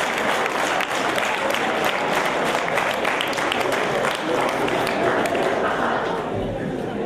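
A large crowd of young people cheers and chatters loudly in an echoing hall.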